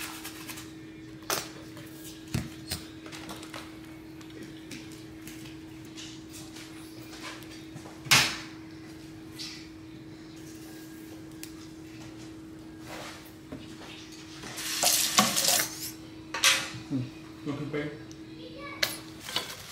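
A sauce bottle squirts and sputters.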